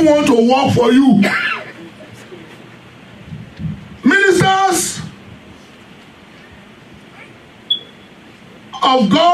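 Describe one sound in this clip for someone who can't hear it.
An elderly man preaches with emphasis through a microphone, pausing between phrases.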